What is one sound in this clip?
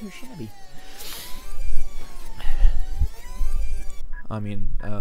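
Bright electronic game music plays with sparkling sound effects.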